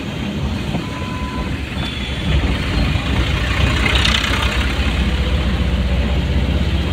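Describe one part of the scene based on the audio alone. A vehicle's engine rumbles steadily from inside the cab.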